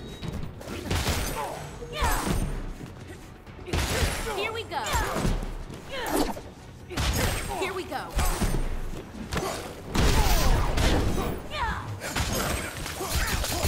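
Energy blasts whoosh and explode.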